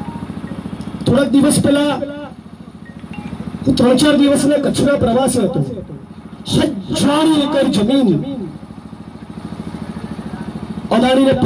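A young man gives a loud, impassioned speech through a microphone and loudspeaker outdoors.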